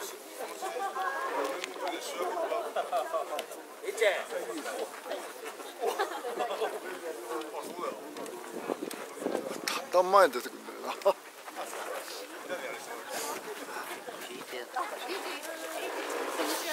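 Men speak and chant together outdoors, close by.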